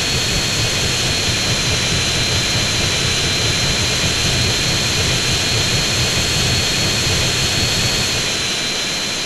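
Jet engines roar steadily with a high whine.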